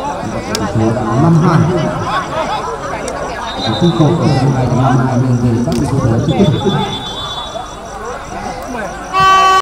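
Men shout and call to each other across an outdoor pitch.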